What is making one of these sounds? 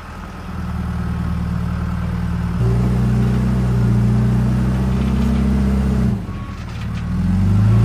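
A diesel engine rumbles loudly close by and revs up and down.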